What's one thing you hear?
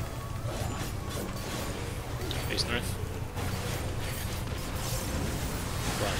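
Game music plays steadily with a deep pulsing beat.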